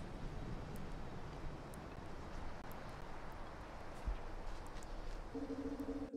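Rain patters steadily.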